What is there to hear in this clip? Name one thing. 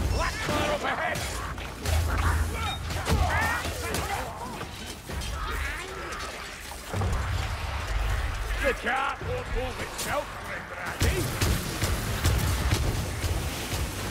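Gunshots fire repeatedly with loud booms.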